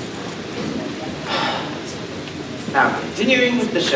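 A young man speaks through a microphone and loudspeakers.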